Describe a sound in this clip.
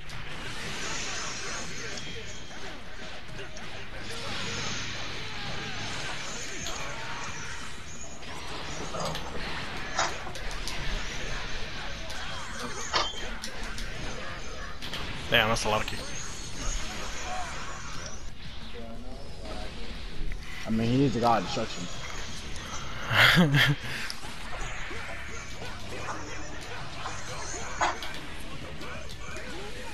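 Energy blasts whoosh and explode.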